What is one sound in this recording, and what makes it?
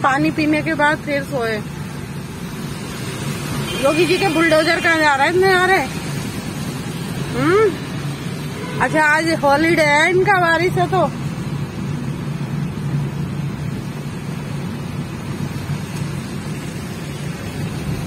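Rain patters on a car windscreen.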